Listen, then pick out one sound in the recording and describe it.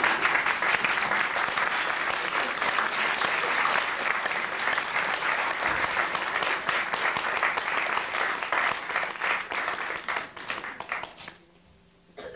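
A crowd applauds loudly in a large hall, then the clapping stops.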